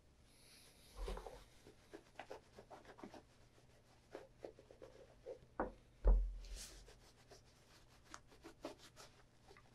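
A cloth rubs and squeaks over a leather shoe.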